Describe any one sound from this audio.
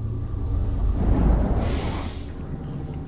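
Papers rustle as they are picked up.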